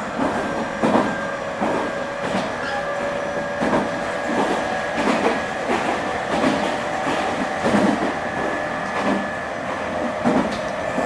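A train's engine idles with a steady hum.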